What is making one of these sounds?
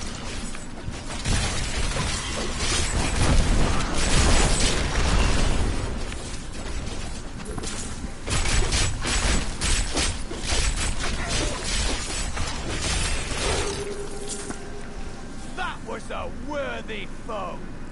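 Weapons clash and skeletons clatter in a fierce battle.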